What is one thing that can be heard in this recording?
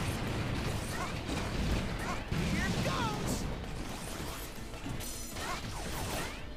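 Energy shots zap with bright, rising chirps.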